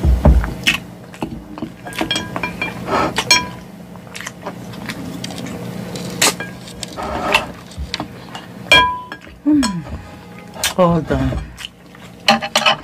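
A fork scrapes and clinks against a glass bowl.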